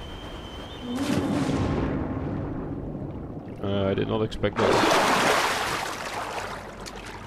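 Water splashes as a game figure dives in.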